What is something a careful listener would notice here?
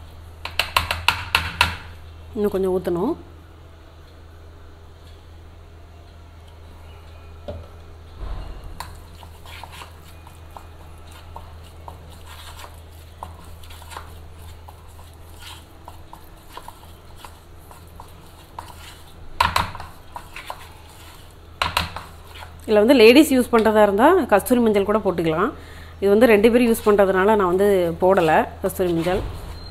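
A metal spoon scrapes and clinks against a plastic bowl while mixing a thick paste.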